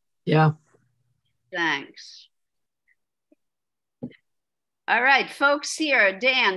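A woman speaks animatedly in bursts over an online call.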